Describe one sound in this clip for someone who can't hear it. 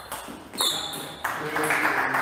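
A table tennis ball clicks back and forth off paddles and a table in an echoing hall.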